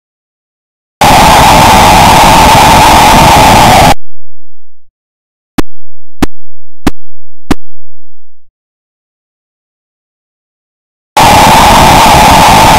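A harsh burst of electronic noise plays from the game.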